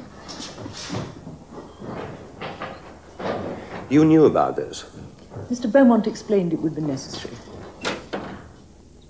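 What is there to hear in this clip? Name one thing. A man speaks in a calm voice close by.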